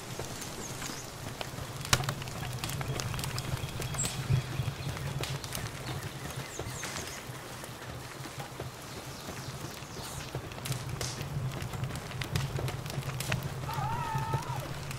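Footsteps patter quickly over dirt.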